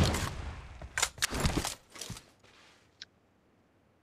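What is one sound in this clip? Sharp rifle shots crack one after another.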